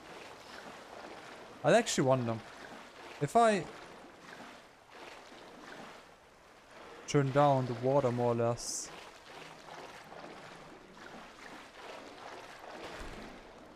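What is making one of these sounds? Footsteps splash and slosh through deep water.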